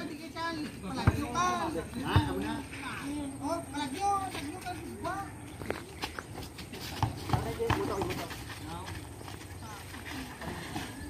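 Young men shout and call out excitedly outdoors.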